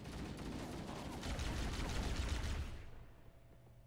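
A plasma rifle fires rapid crackling bursts.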